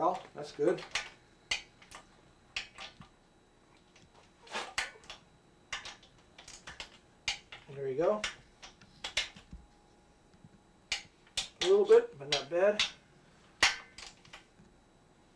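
A metal wrench clicks and ratchets against an engine.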